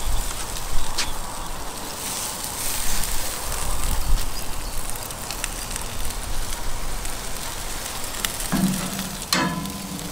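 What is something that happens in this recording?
Tongs click against a metal grill grate.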